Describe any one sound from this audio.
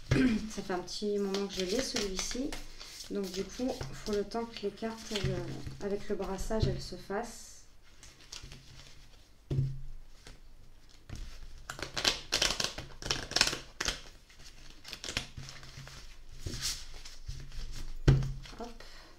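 Cards shuffle and slide against each other with soft flicks and rustles.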